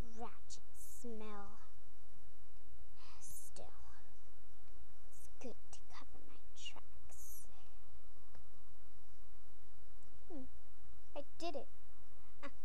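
A plastic toy taps and clicks against a hard plastic case.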